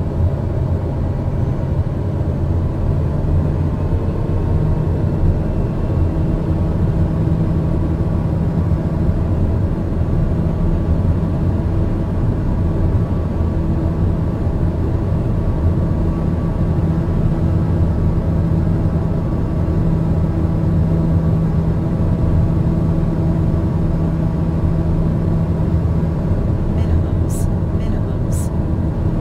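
A plane's engines drone steadily in the cockpit.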